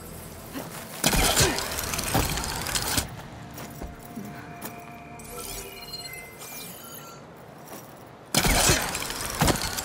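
A rushing whoosh sounds as a figure leaps through the air.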